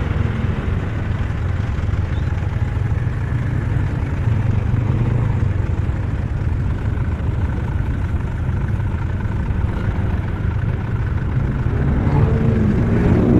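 A motorcycle engine idles close by with a low rumble.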